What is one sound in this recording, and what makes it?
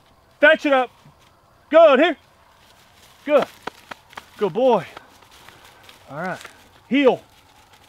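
A hunter blows a goose call in short, honking bursts outdoors.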